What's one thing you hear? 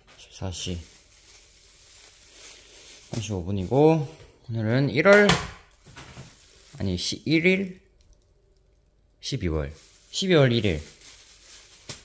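Plastic bags rustle as they are handled.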